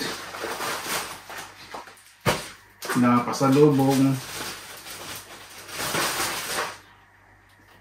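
A plastic package rustles and crinkles.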